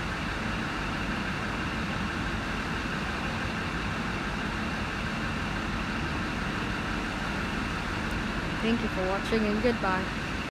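A train engine idles with a steady low hum nearby.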